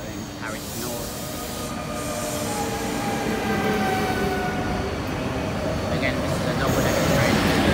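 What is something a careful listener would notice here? Train brakes squeal with high, drawn-out tones.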